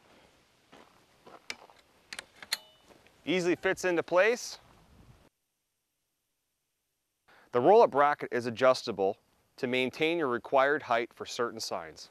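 A metal clamp clicks as it is fastened.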